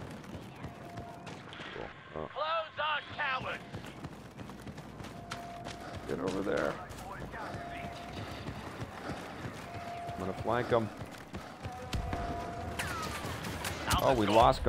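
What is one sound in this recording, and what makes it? Footsteps run quickly over hard stone.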